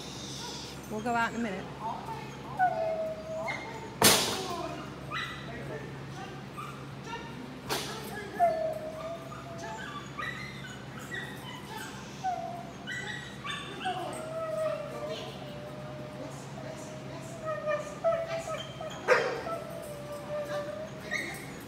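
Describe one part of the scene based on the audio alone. A dog's paws thump on a wooden ramp.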